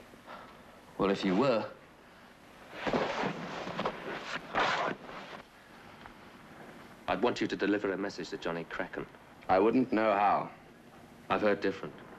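A man talks with agitation close by.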